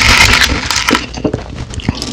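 Fingers rustle through crushed ice close to a microphone.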